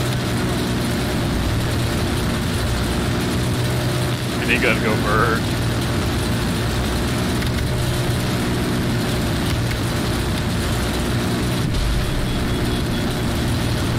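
A helicopter's rotor drones steadily overhead.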